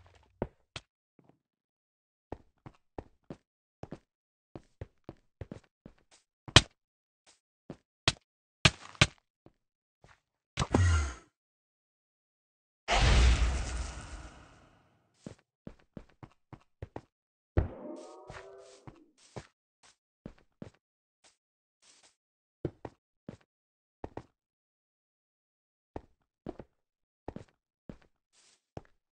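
Blocks click and thud as they are placed one after another.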